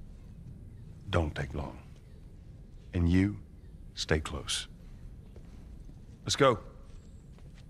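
A man speaks in a low, firm voice.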